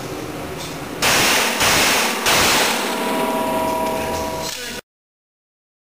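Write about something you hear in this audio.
An aerosol can sprays with a hiss.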